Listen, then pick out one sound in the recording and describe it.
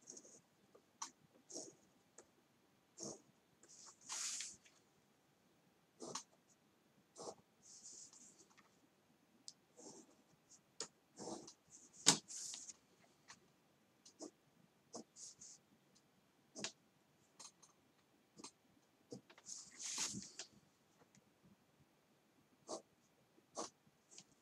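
A plastic ruler clicks and taps against a table.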